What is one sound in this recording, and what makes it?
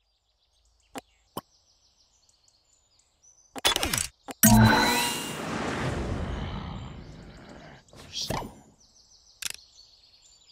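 A menu button clicks a few times.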